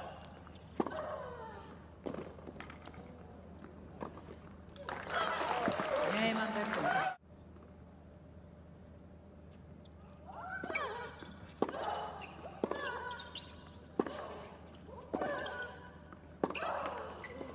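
A tennis ball is struck hard with a racket.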